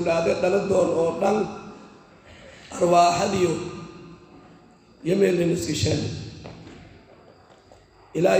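A man speaks slowly and calmly into a close microphone, with pauses between phrases.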